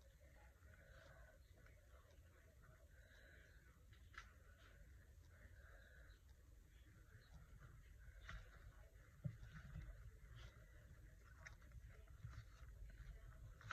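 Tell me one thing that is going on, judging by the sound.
Paper rustles softly as hands press a strip onto a page.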